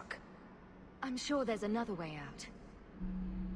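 A second young woman answers calmly.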